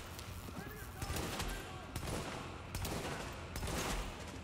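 Rifle shots ring out one at a time, echoing off hard walls.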